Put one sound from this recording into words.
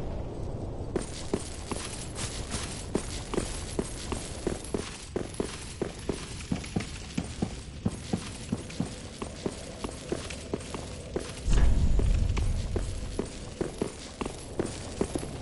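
Armoured footsteps clank quickly on stone.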